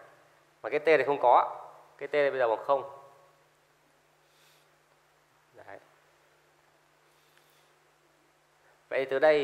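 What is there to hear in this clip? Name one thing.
A man speaks calmly through a close microphone.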